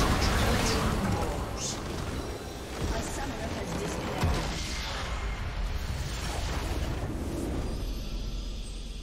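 Spell effects and attacks crackle and boom in a game battle.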